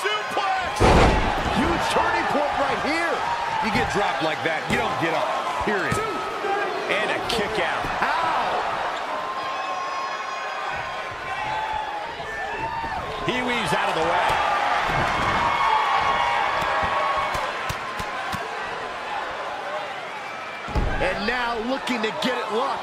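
Heavy bodies slam down onto a wrestling ring mat with loud thuds.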